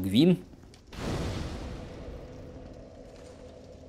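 A fire ignites with a soft whoosh.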